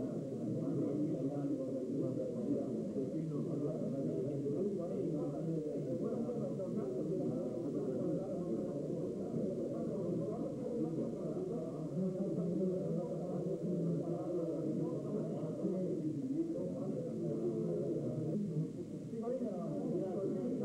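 A crowd of elderly men chatters indoors in a busy murmur.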